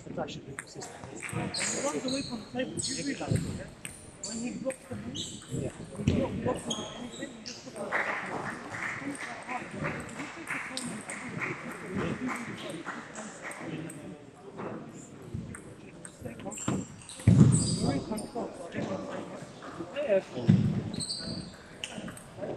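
A middle-aged man talks close by in an echoing hall.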